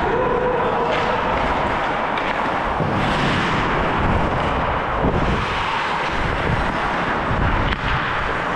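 Hockey sticks clack against the ice and puck.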